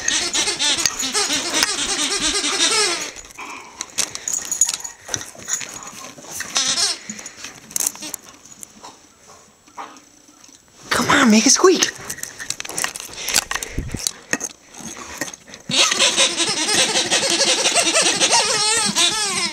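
A rubber toy squeaks rapidly and repeatedly as a dog chews it.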